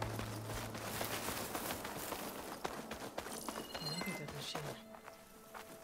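Footsteps crunch on a dirt path through undergrowth.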